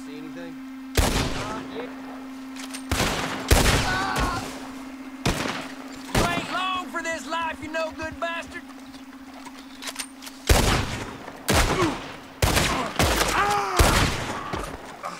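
Gunshots crack loudly several times.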